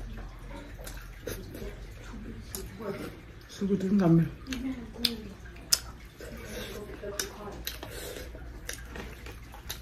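A young woman chews food noisily, close by.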